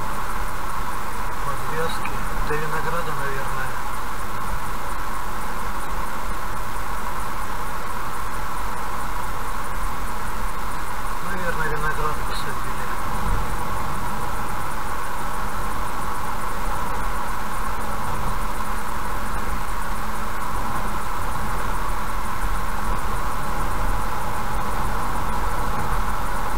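A car drives steadily along a road, its tyres and engine humming.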